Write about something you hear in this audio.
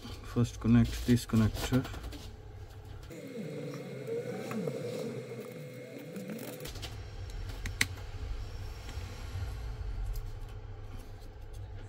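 Small plastic parts click and scrape as a phone is pried apart by hand.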